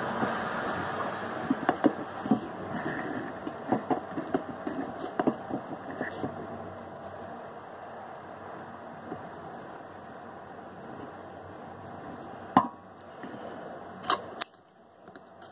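Hands handle plastic parts close by, with light clicks and taps.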